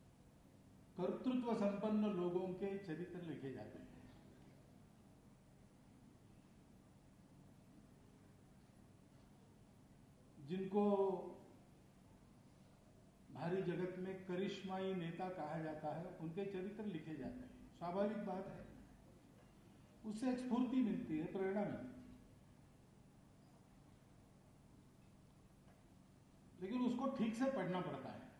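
An elderly man speaks calmly into microphones, with long pauses between phrases.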